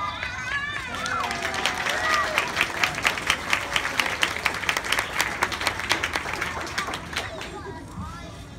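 Young children clap their hands in a quick, steady rhythm.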